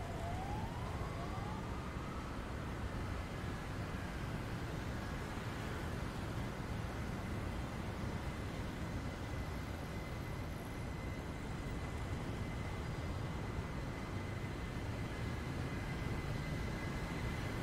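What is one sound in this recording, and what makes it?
A train approaches and hums steadily as it draws closer.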